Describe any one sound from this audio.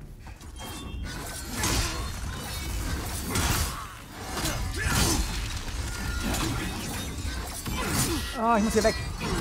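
Heavy blasts boom and crash repeatedly.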